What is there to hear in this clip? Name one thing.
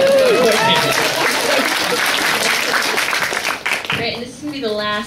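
An audience laughs and cheers loudly in a large hall.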